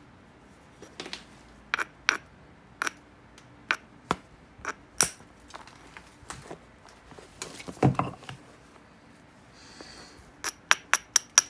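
A small stone taps and scrapes against the edge of a piece of glassy rock with sharp, irregular clicks.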